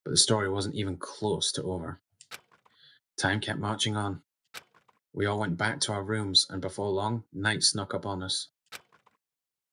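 A man reads aloud into a close microphone.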